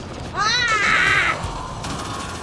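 Sci-fi energy weapons fire with loud, sweeping electronic bursts.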